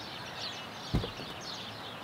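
A car door clicks open.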